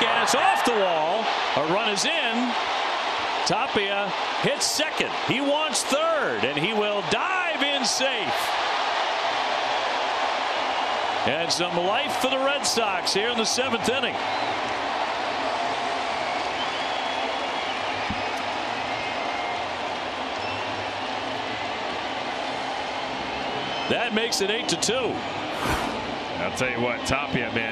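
A large stadium crowd cheers loudly.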